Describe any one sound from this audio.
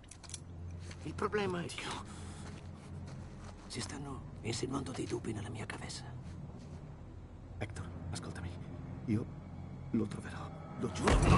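A second man pleads with urgency.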